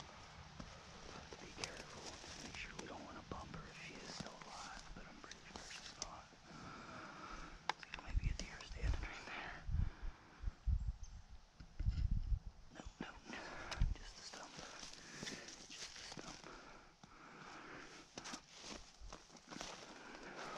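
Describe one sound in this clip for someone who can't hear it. Footsteps crunch through dry leaves close by.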